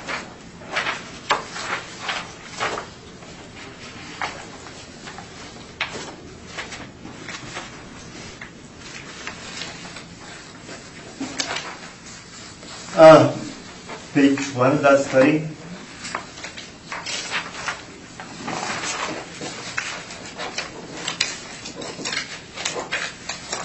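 Papers rustle and shuffle on a table.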